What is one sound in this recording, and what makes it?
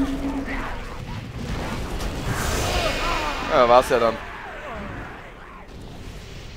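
Magic spells whoosh and burst during a fight.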